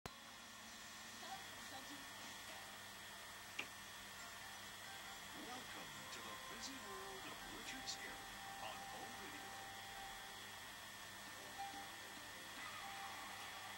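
A man narrates faintly through a television's speaker.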